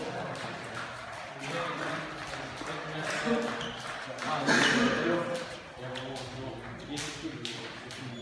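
Several voices chatter in an echoing gym.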